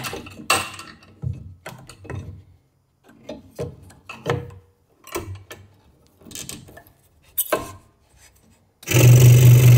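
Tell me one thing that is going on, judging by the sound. Small wooden pieces knock and click against a metal table.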